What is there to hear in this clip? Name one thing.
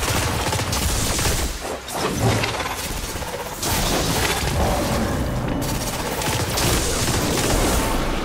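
Electric blasts crackle and hiss.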